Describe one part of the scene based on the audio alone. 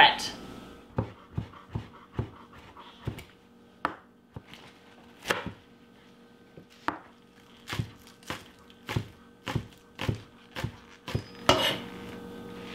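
A knife chops on a cutting board with quick, steady knocks.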